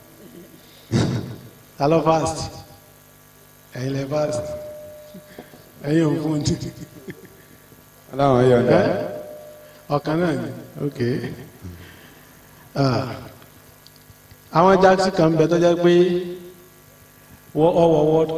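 A man speaks with animation into a microphone, heard through a loudspeaker with pauses between phrases.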